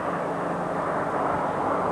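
A car drives along a road.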